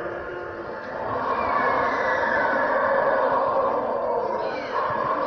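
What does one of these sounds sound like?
A dinosaur model roars loudly through a loudspeaker.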